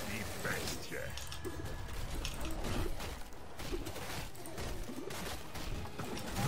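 Fantasy game fight effects clash and thump.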